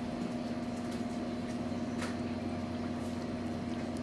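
A small dog chews and licks at a cake.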